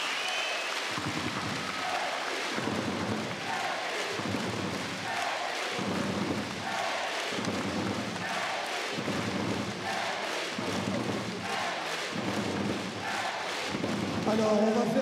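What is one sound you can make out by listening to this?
A crowd claps along in a steady rhythm.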